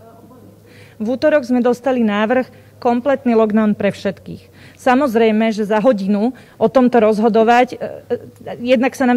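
A woman speaks calmly and clearly into a microphone, close by.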